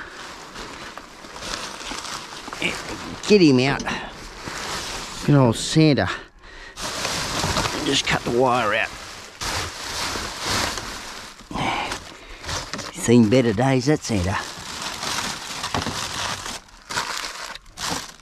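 Plastic bags and wrappers rustle as hands dig through rubbish.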